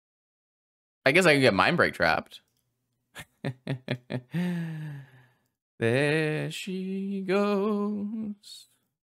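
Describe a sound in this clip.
A young man talks with animation, close to a microphone.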